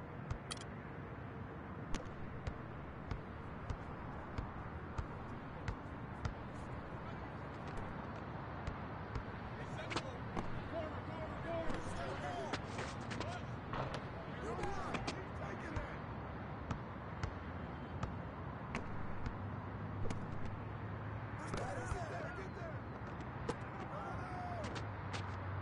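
A basketball bounces steadily on a hard court.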